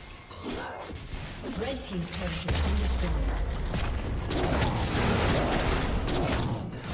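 Video game combat effects whoosh and clash.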